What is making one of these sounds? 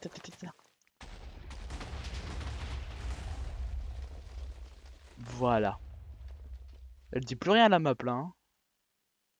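Explosions boom and rumble in a long, deep roar.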